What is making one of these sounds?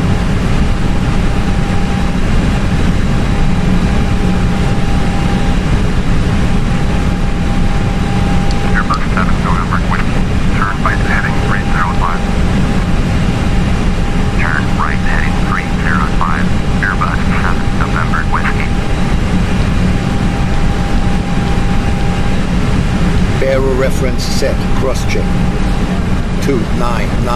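A jet engine drones steadily and low.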